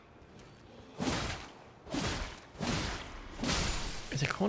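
A sword swings and strikes with sharp whooshing bursts.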